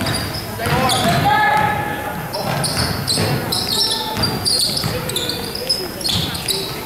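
Young players shout and call out in a large echoing gym.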